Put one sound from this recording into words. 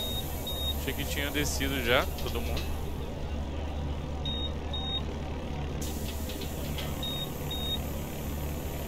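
A bus door warning beeps in short repeated pairs.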